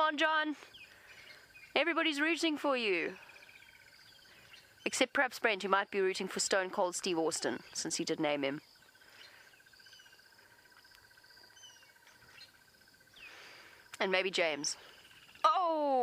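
A bullfrog calls in loud, rising and falling croaks, in bursts.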